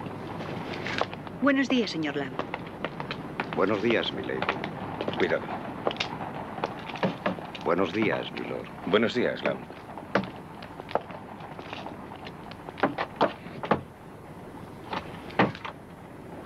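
Men talk briefly outdoors.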